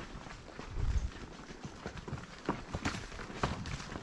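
Dry twigs and brush crackle as animals move through the undergrowth.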